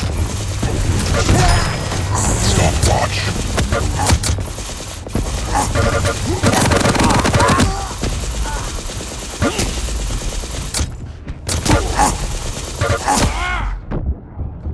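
A sci-fi energy weapon fires in rapid crackling bursts.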